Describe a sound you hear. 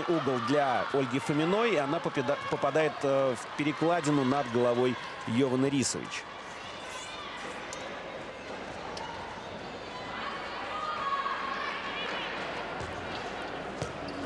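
A handball bounces on the floor.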